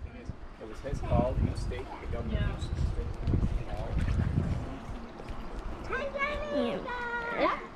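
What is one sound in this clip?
Girls talk and shout playfully nearby.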